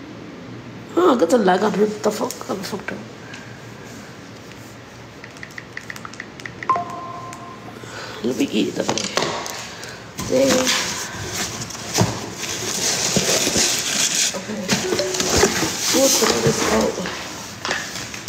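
A young woman talks casually, close to a phone's microphone.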